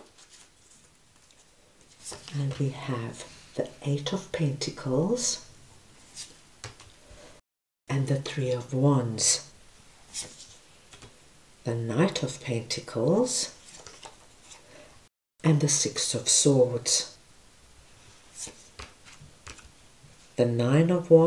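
Cards are laid down one by one on a table with soft taps.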